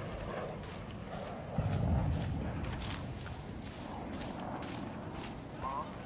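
Leaves rustle as someone pushes through dense foliage.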